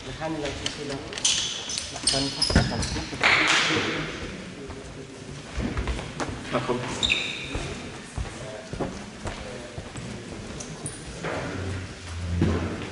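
Men talk casually nearby in an echoing hall.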